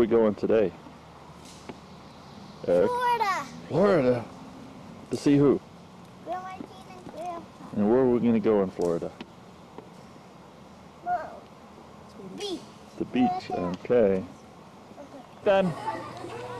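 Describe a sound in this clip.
A young child talks and exclaims excitedly close by.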